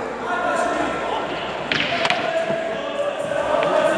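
A cue ball clicks against other billiard balls.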